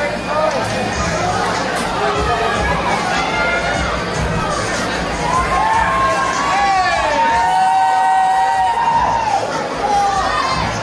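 An electric guitar wails and squeals with loud feedback through loudspeakers.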